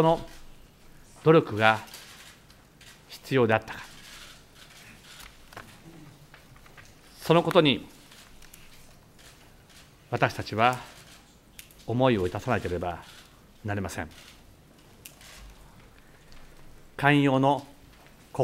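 A middle-aged man speaks slowly and formally into a microphone, with long pauses between phrases.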